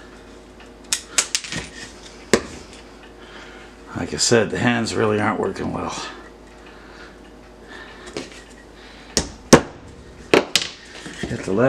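Wooden pieces click and knock against each other and a board.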